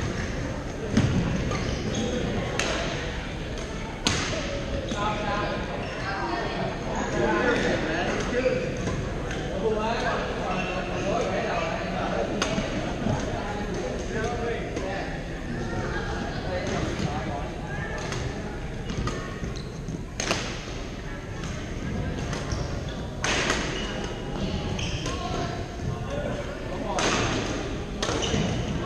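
Shuttlecocks are struck with rackets, with sharp pops echoing through a large hall.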